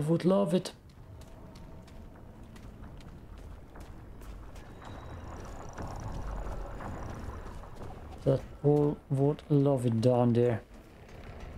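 A young man speaks with animation, close to a microphone.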